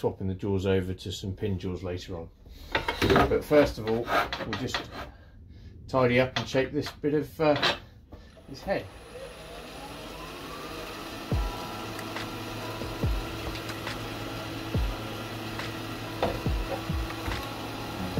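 A metal bar clinks against a lathe chuck as it is tightened.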